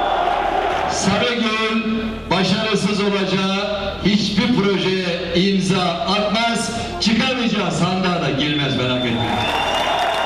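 A man speaks loudly through a loudspeaker to a crowd outdoors.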